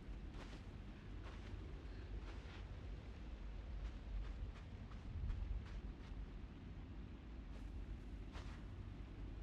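Light footsteps patter on a hard floor.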